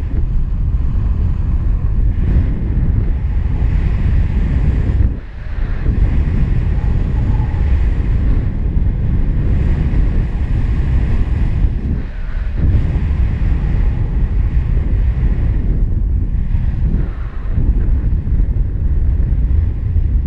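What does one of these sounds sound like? Strong wind rushes and buffets loudly close by.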